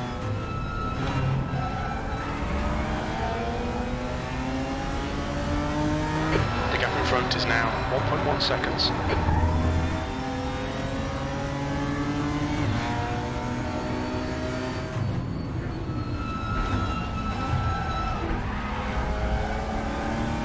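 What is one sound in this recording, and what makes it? A racing car engine revs high and drops as gears shift.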